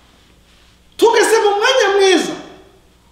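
A man preaches loudly with animation through a microphone in an echoing hall.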